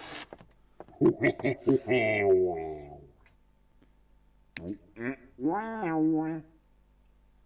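A young man talks and exclaims with animation close to a microphone.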